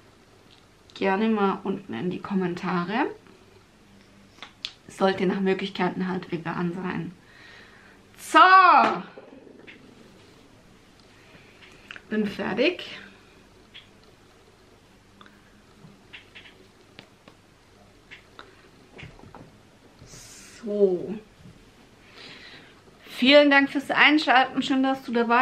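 A woman talks calmly and expressively close to a microphone, in bursts with pauses.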